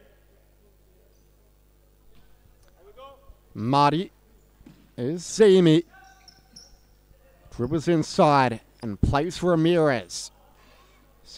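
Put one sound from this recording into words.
A ball thuds off a player's foot.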